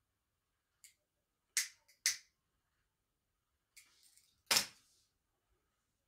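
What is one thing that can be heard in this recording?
Tape crackles and tears close by.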